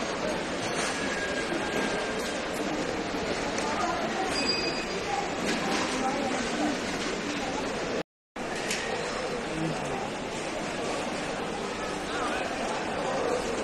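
A crowd of people talks all around in a large echoing hall.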